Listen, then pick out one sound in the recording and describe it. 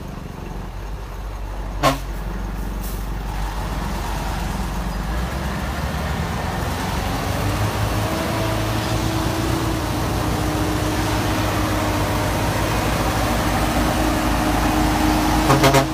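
A heavy truck engine rumbles and strains up close.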